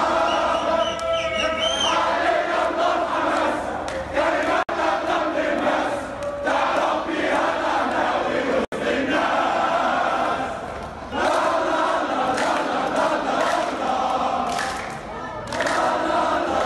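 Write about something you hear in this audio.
A large crowd of fans chants and sings loudly together.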